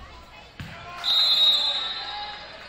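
A referee's whistle blows sharply in a large echoing gym.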